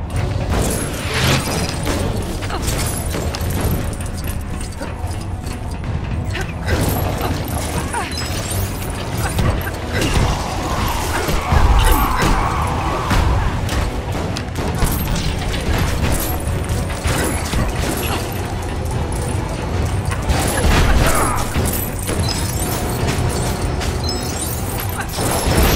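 Small objects break apart with clattering and popping sounds.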